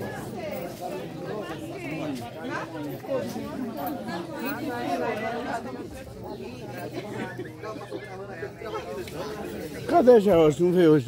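Several people talk in the background.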